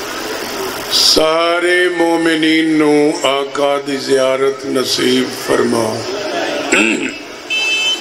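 A middle-aged man chants loudly and with feeling through a microphone.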